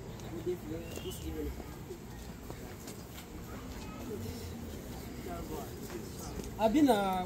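Several adults talk calmly nearby outdoors.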